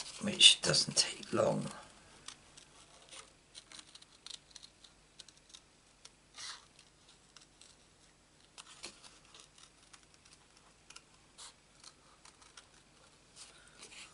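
A sheet of card rustles and taps as it is handled.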